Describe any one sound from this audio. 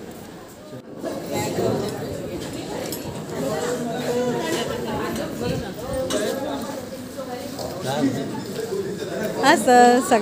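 Several women and men chatter around in a busy room.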